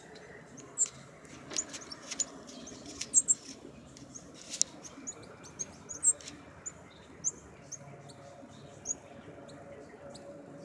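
A small animal gives short, high squeaky chirps nearby.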